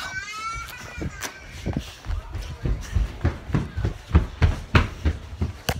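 Fabric rubs and thumps against a phone microphone.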